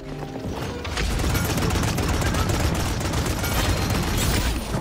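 Rapid gunfire crackles and pops in quick bursts.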